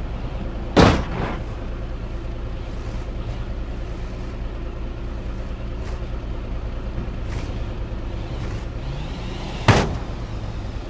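A car thuds heavily onto a metal trailer ramp.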